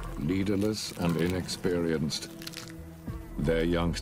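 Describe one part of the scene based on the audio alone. A lion tears and chews at a carcass up close.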